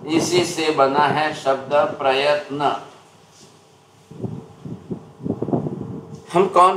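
An elderly man speaks calmly through a microphone.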